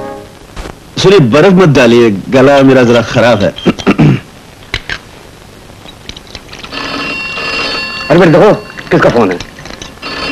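A man speaks in a raised, animated voice nearby.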